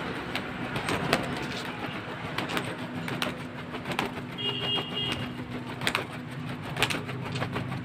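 Pigeons flap their wings in noisy bursts close by.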